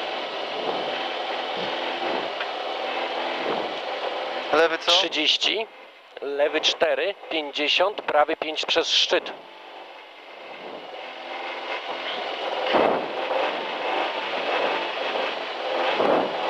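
A rally car engine idles steadily close by.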